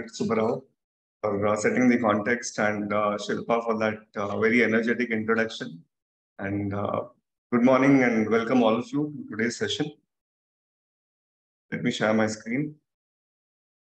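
A young man talks calmly over an online call.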